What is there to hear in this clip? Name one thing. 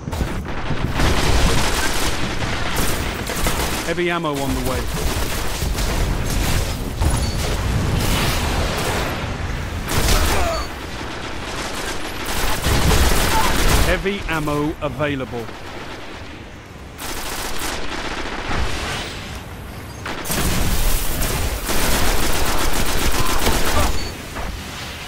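Rapid gunfire rattles in loud bursts.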